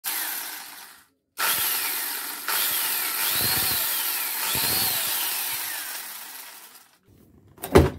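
An electric grinder whirs in short bursts, its pitch rising and falling.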